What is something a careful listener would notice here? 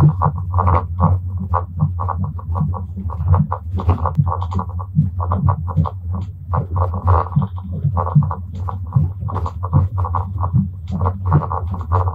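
A man talks with animation close to a phone's microphone.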